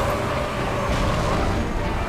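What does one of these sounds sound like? An energy blast explodes with a burst.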